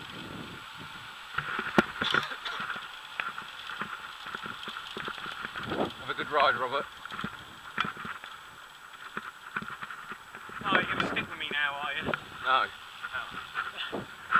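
A bicycle rattles and clicks over a rough road.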